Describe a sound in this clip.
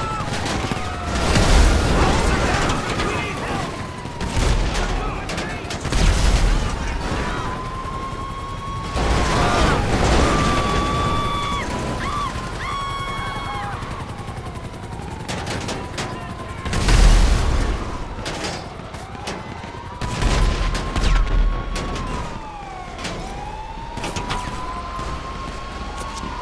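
A police siren wails, rising and falling.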